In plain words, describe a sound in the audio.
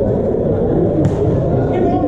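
A volleyball is served with a hand slap in a large echoing hall.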